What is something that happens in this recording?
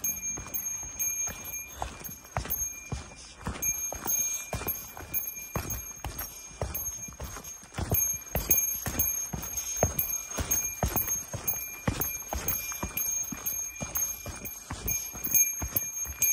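Bicycle tyres rattle and thump over a bumpy dirt trail.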